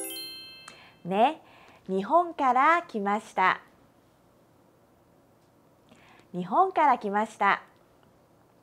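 A young woman speaks clearly and slowly into a close microphone, pronouncing short phrases.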